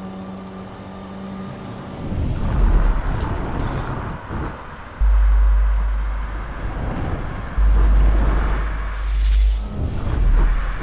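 A car engine hums steadily as a car drives along a highway.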